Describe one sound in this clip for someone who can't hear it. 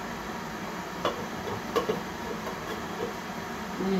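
Small objects clatter on a table.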